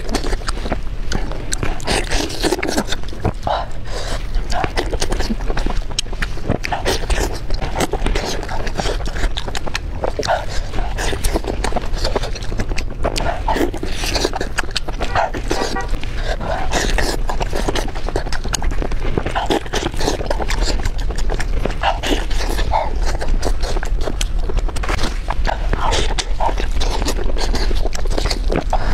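Soft meat tears apart in gloved hands.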